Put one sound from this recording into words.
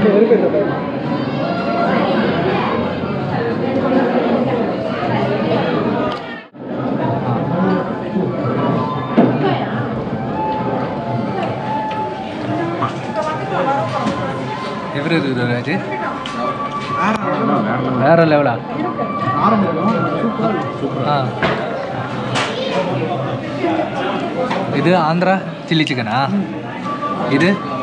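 A restaurant crowd chatters in the background.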